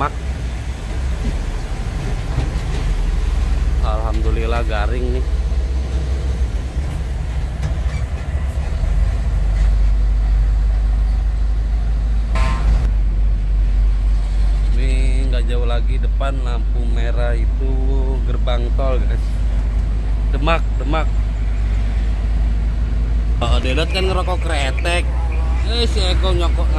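A large vehicle's engine rumbles steadily from inside the cab.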